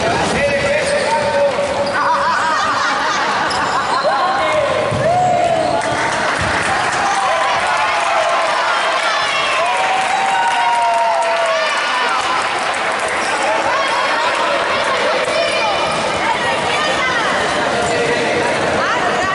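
Several men talk and call out to each other in a large echoing hall.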